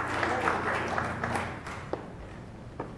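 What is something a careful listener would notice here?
An organ plays softly and stops.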